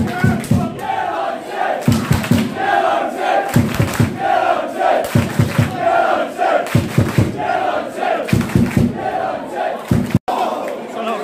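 A crowd claps hands in a steady beat.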